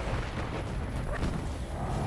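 An energy blast bursts with a crackling roar.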